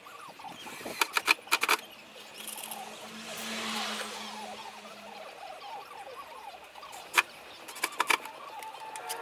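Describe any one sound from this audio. Wood knocks and clatters as panels are handled.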